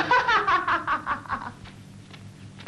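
A man laughs loudly.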